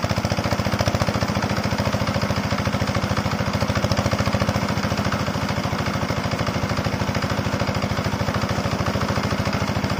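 Water gushes and splashes hard from a pipe onto the ground.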